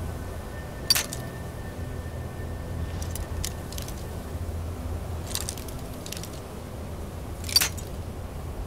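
A lockpick snaps with a sharp metallic crack.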